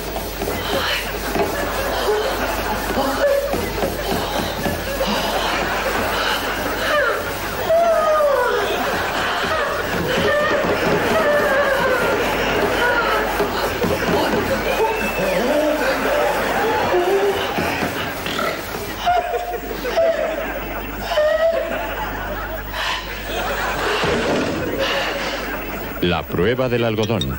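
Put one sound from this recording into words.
A man speaks in a high, put-on old woman's voice, with animation, close by.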